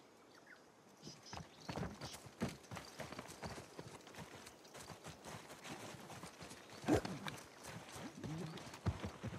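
Footsteps run quickly over stone and grass.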